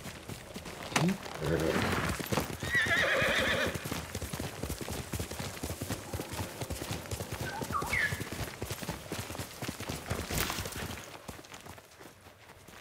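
A horse gallops with quick, rhythmic hoofbeats.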